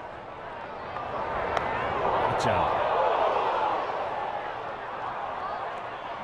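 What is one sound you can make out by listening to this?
A crowd cheers and roars in a large open stadium.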